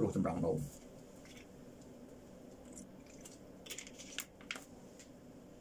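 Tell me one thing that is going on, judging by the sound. A man drinks from a plastic bottle.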